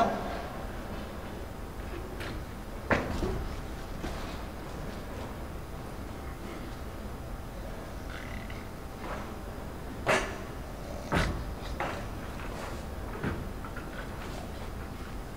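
Footsteps thud on a hollow wooden stage.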